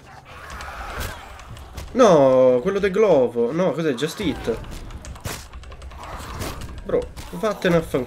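Zombies groan and snarl close by.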